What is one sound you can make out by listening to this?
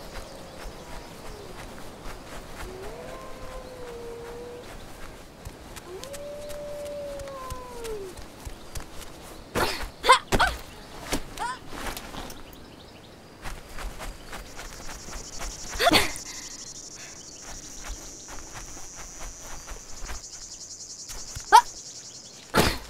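Footsteps crunch through grass and over rock.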